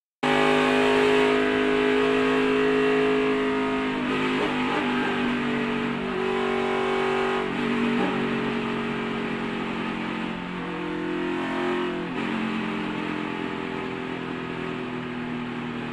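A race car engine roars loudly at high speed, its pitch rising and falling.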